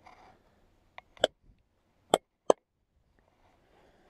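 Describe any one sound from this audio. Hands rub together briskly.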